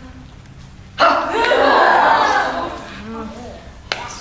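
A young woman cries out loudly and dramatically nearby.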